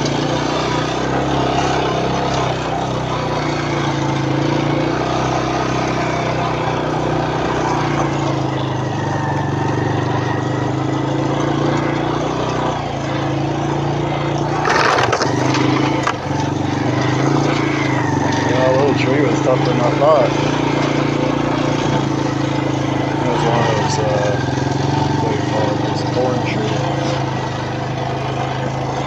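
A small vehicle engine hums steadily close by.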